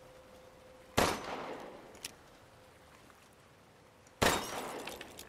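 A pistol fires loud single shots that ring out.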